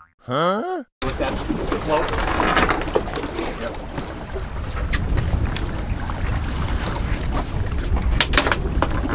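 Waves slap against the side of a boat.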